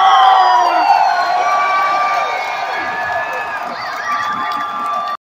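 A large crowd cheers and screams loudly outdoors.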